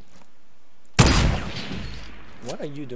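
A sniper rifle shot booms and echoes away.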